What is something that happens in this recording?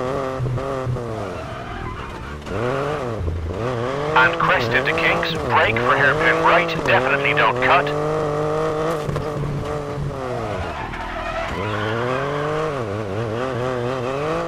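Tyres hiss and crunch over wet gravel.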